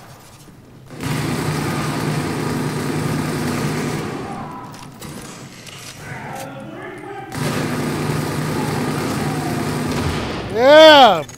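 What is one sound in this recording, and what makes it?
Automatic rifles fire in loud, rapid bursts.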